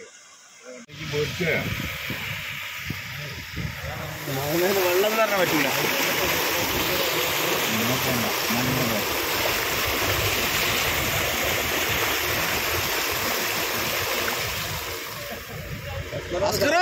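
Water splashes and rushes as a vehicle drives through a flood.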